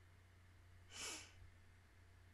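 A young woman sighs heavily into a close microphone.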